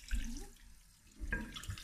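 Tap water runs into a metal sink.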